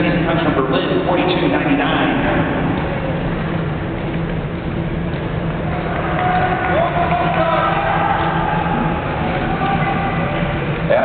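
Skate blades hiss and scrape across ice in a large echoing hall.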